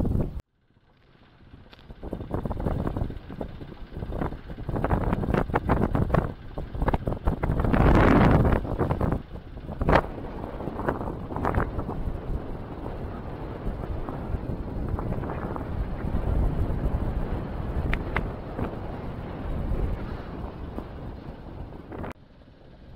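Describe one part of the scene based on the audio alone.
Wind buffets loudly, rumbling and gusting outdoors.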